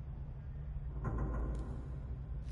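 A heavy switch clunks into place.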